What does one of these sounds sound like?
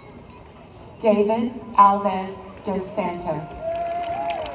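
A man announces loudly over a public address loudspeaker outdoors.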